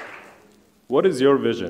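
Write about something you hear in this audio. A man speaks calmly into a headset microphone, heard through loudspeakers.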